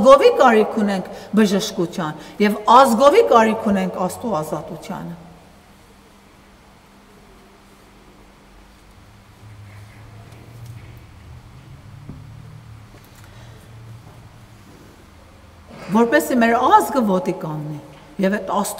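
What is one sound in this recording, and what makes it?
A middle-aged woman speaks calmly and clearly into a nearby microphone.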